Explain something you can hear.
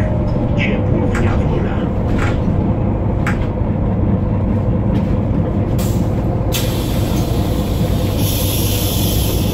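A diesel city bus engine drones, heard from inside the bus on the move.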